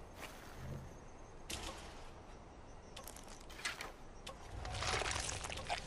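A blade cuts and tears wet flesh.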